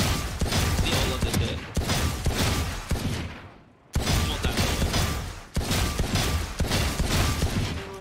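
A pistol fires single gunshots.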